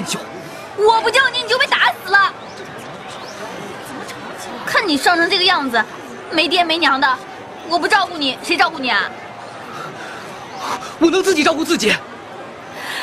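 A young woman speaks sharply and with agitation, close by.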